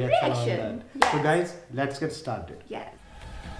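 A young woman speaks cheerfully and close by.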